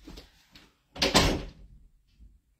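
A door shuts nearby with a thud.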